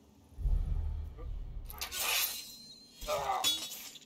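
A blade strikes a body with a wet slash.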